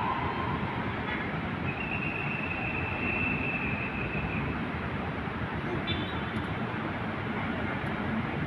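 Traffic rumbles steadily on a city street below.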